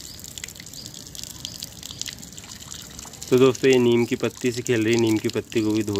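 A small child splashes a hand in running water.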